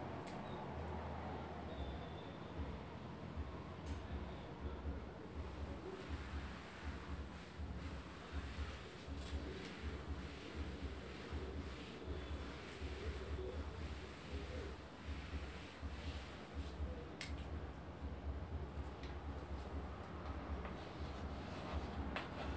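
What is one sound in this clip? A woman speaks calmly and steadily, close by.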